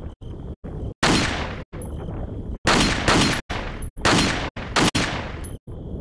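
Gunshots crack one after another in an echoing hall.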